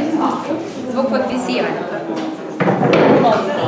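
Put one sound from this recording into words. A woman speaks to a group.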